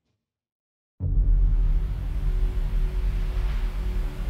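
A deep rumble of ship engines and rushing water swells.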